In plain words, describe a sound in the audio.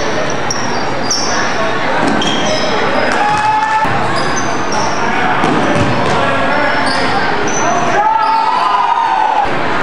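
Sneakers squeak sharply on a wooden court in a large echoing gym.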